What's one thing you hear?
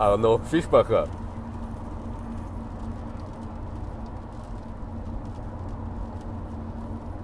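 A car engine hums steadily while driving on a highway.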